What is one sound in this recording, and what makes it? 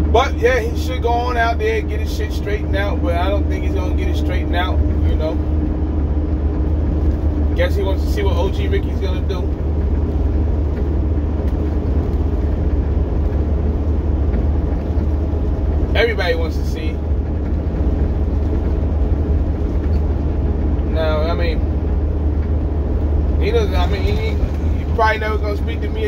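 A vehicle engine drones low and steady inside a cab.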